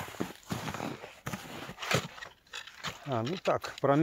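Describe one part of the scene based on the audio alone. An ice auger chops and scrapes against ice.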